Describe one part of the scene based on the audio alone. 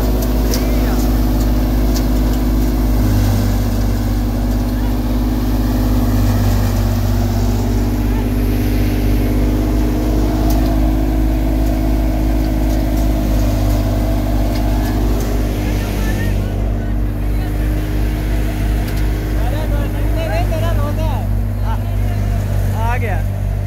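A threshing machine's engine drones loudly and steadily close by.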